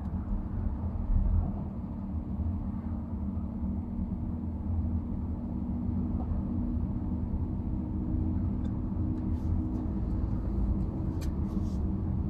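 A car's engine hums steadily from inside while driving.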